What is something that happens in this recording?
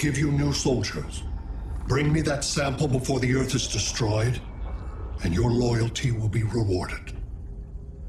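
A man speaks in a deep, menacing voice.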